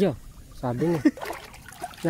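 Water bubbles up at the surface.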